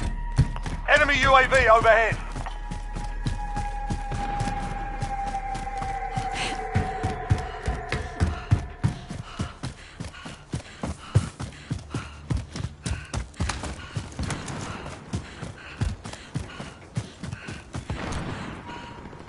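Quick footsteps run over dirt and gravel.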